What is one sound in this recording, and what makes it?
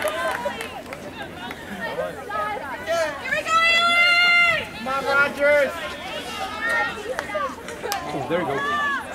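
Young women shout and call out loudly across an open field.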